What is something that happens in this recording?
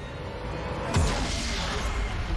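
A deep explosion booms suddenly.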